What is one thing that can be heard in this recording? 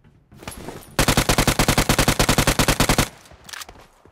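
Rapid automatic gunfire rattles in a long burst.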